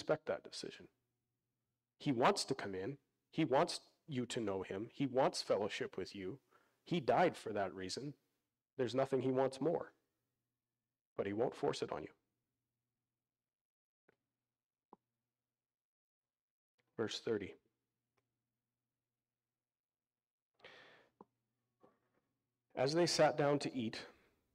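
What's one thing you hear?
A man speaks calmly into a microphone, heard through a loudspeaker, with pauses.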